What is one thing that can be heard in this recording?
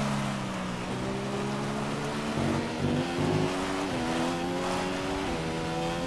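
A racing car engine whines steadily, its pitch climbing and dropping back with each gear change.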